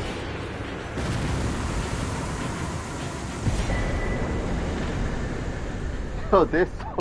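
A loud magical blast bursts and roars.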